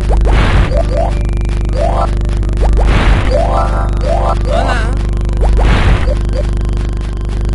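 Bright rising chimes ring out as gems are collected.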